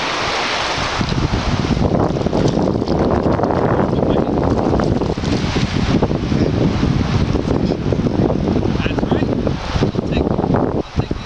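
Wind buffets and rumbles outdoors on open water.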